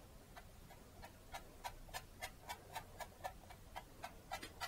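A palette knife scrapes lightly across canvas in short, quick strokes.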